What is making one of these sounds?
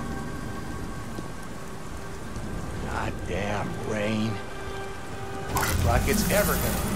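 Rain falls steadily outdoors.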